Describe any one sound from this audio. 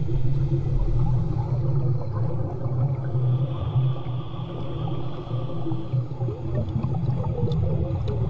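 Air bubbles gurgle from a snorkel as a woman breathes out underwater.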